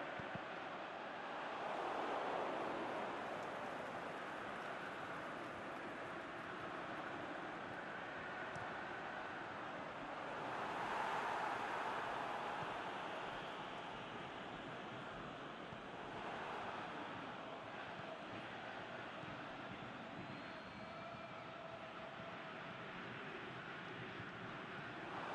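A large stadium crowd roars steadily, swelling louder now and then.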